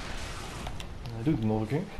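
Water splashes heavily as a creature lands.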